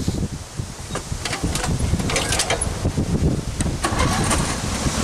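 Metal parts of a riding mower click and clatter as a man climbs on.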